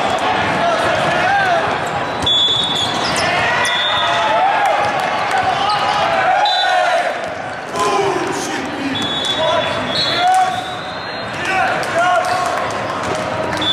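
Young men shout to each other on a volleyball court.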